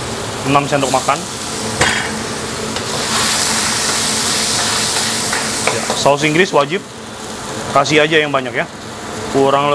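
A metal ladle clanks against a wok.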